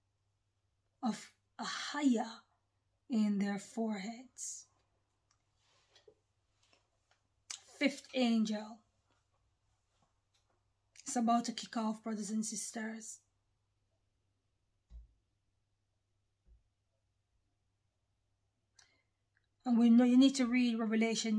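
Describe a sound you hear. A woman speaks calmly close by, in short bursts with pauses.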